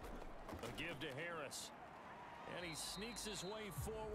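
Football players collide in a tackle with heavy thuds.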